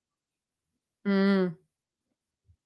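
A young woman lets out a short, loud vocal sound close to a microphone.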